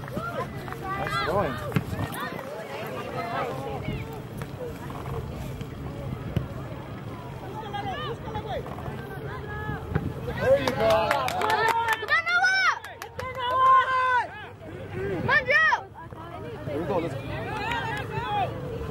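Spectators shout and cheer loudly nearby, outdoors.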